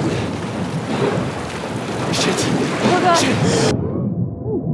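Water gushes and splashes loudly.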